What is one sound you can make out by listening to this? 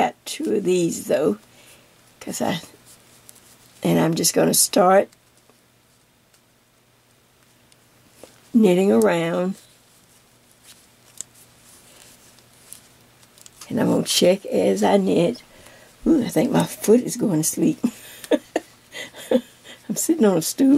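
Knitting needles click softly together.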